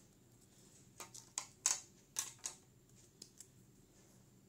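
A pen taps down onto a desk.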